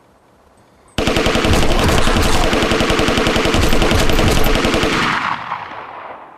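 An automatic rifle fires a long rapid burst of shots.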